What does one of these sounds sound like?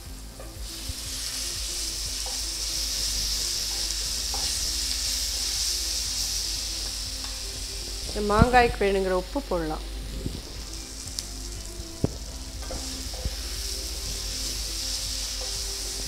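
A spatula scrapes against a pan.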